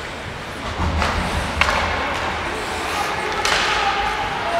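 Hockey sticks clack sharply against a puck now and then.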